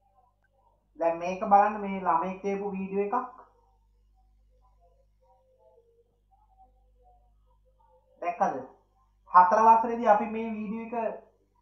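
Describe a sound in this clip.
A woman speaks calmly over an online call.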